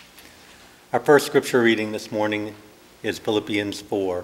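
A man reads aloud through a microphone in an echoing hall.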